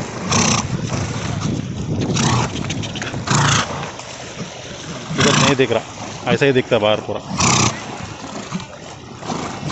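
Water splashes and sloshes as a horse swims close by.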